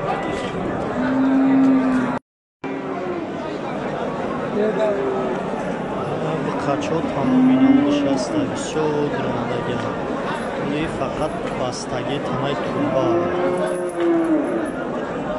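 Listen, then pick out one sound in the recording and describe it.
Cattle low nearby.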